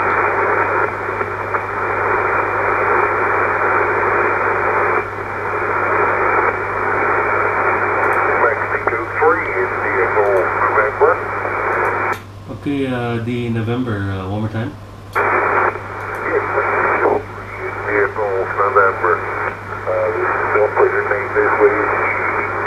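Radio static hisses and crackles from a loudspeaker.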